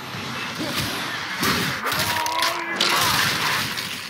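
Flames burst and roar loudly.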